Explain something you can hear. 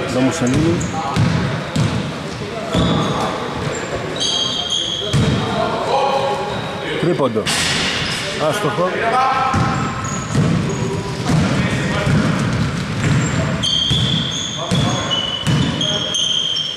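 A basketball bounces on a wooden court.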